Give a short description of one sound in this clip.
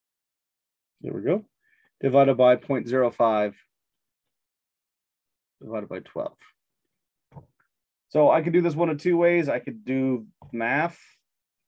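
A man speaks calmly and explains close to a microphone, with pauses.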